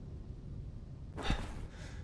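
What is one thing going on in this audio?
Footsteps thud slowly on a wooden floor.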